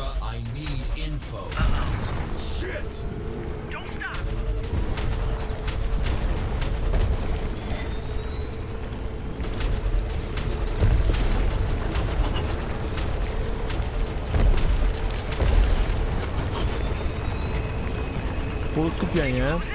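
A game vehicle's engine roars steadily at high speed.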